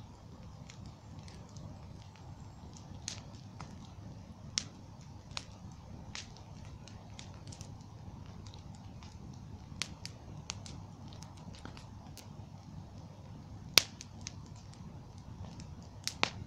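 Flames of a bonfire roar with a low rumble.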